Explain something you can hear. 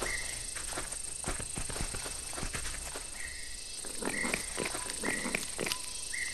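A crocodile bites and tears at flesh with wet crunching chomps.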